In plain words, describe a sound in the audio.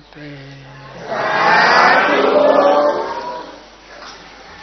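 A crowd of people chants together in unison.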